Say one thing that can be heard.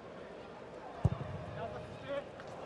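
A football is struck with a dull thud.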